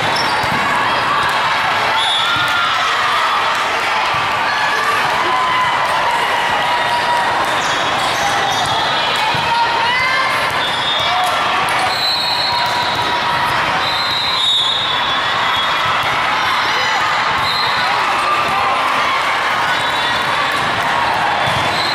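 A ball thumps as players hit it.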